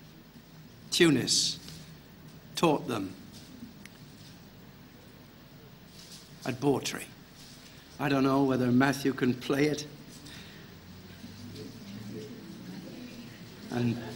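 An elderly man speaks calmly through a microphone, in short phrases with pauses.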